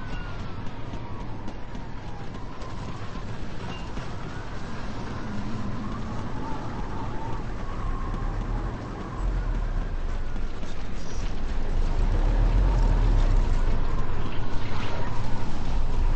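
A tornado's wind roars steadily and grows louder.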